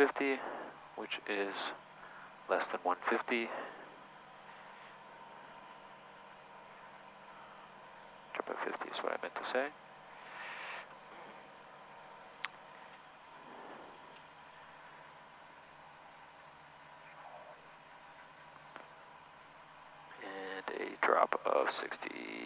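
An aircraft engine hums steadily in the background.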